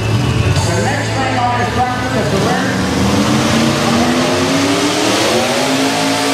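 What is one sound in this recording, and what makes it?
A pulling tractor's engine roars loudly and revs up.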